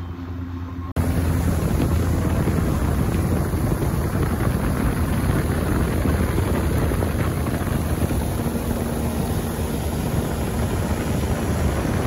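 An outboard motor roars as a boat speeds along.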